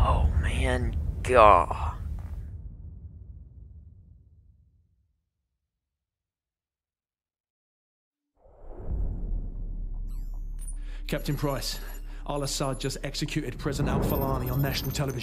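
A man talks with animation into a nearby microphone.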